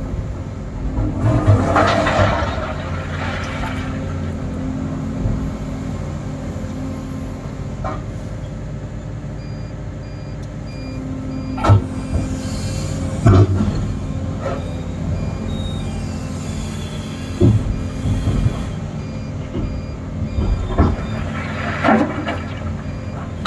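Stones clatter and scrape as an excavator bucket digs and dumps gravel.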